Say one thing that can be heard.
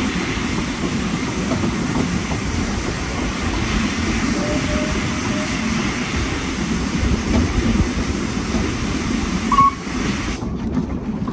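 A train rumbles and clatters steadily along the track.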